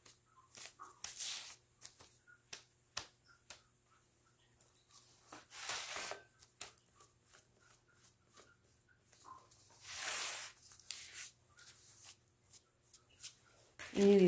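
A damp sponge rubs and wipes against soft clay.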